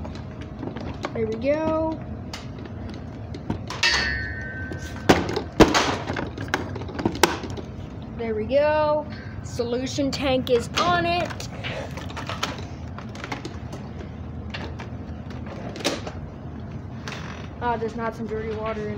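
A plastic baby gate clatters.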